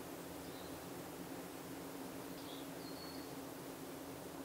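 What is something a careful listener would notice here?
Birds call faintly high overhead.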